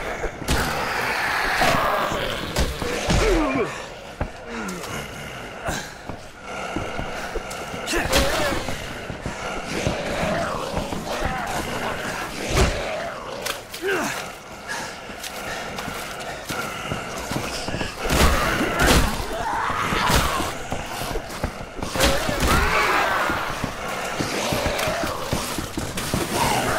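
Heavy blows thud and smack against flesh in quick bursts.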